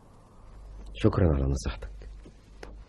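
An elderly man chuckles softly.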